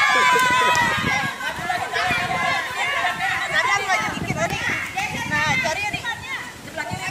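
Several women chatter and laugh close by.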